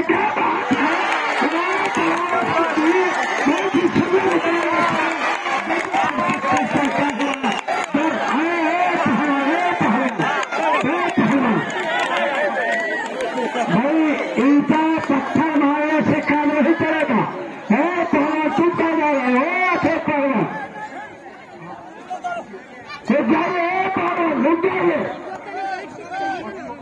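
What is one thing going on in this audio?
A man talks loudly and with animation.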